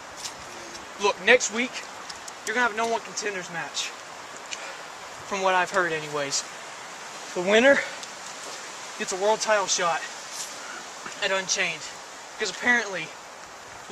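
Young men talk casually in turns, close by.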